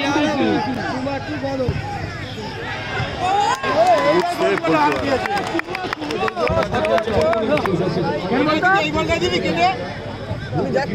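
A large outdoor crowd cheers and shouts excitedly.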